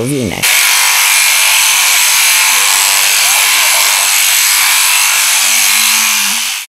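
Electric clippers buzz steadily.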